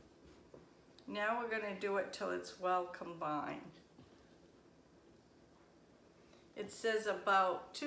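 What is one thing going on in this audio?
A spoon scrapes and stirs in a bowl.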